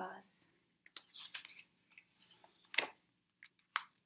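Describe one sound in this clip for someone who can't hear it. A page of a book turns with a papery rustle.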